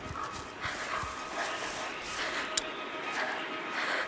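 Tall plants rustle as children push through them.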